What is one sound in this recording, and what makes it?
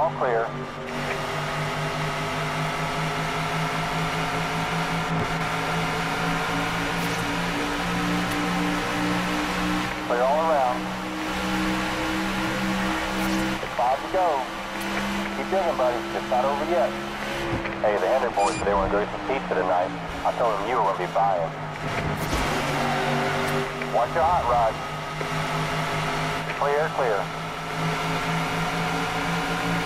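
A race truck engine roars steadily at high speed.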